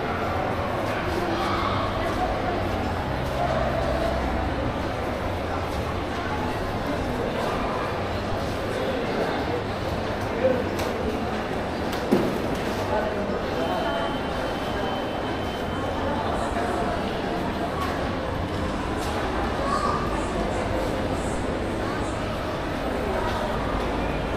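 Footsteps tap on a hard floor nearby.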